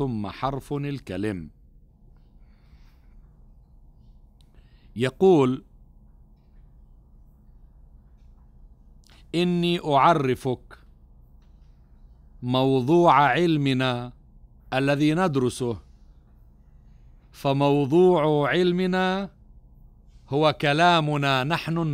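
A middle-aged man speaks calmly into a microphone, with long pauses between phrases.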